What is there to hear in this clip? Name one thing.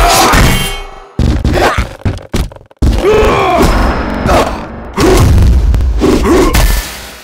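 Sword blades swish and heavy blows thud in a fight.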